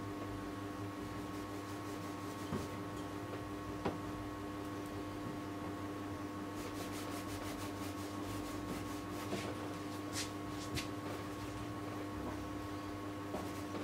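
Fingers rub and brush softly across a canvas.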